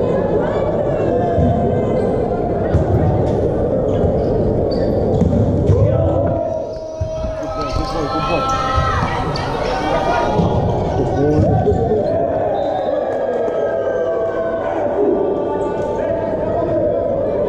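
Young men shout on a court in a large echoing hall.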